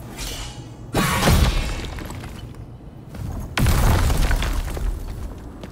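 A wooden door bursts apart with loud cracking and splintering.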